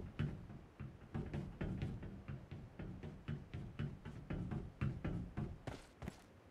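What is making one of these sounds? Footsteps clank rhythmically on a metal bridge.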